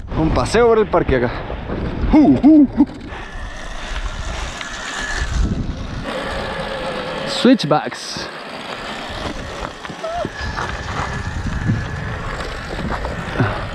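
Bicycle tyres roll and crunch over a dry dirt trail.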